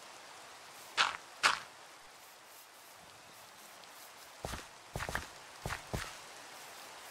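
Blocks thud sharply as they are placed and broken.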